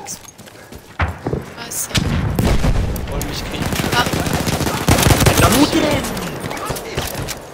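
Gunshots crack and boom in rapid bursts.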